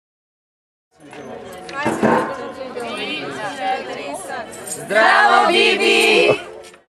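Young women chatter and cheer excitedly nearby.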